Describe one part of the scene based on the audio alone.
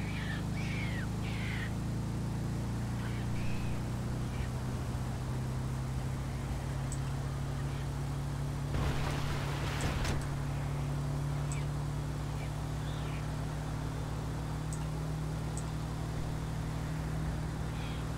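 A van's engine hums steadily as it drives along a highway.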